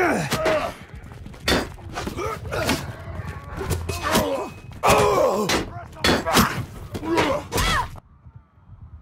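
Weapons clang against wooden shields in a fight.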